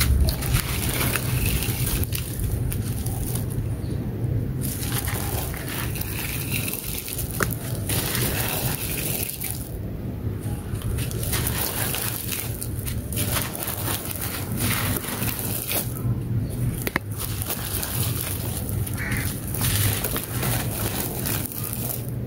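Loose dry dirt sifts and pours from hands onto more dirt.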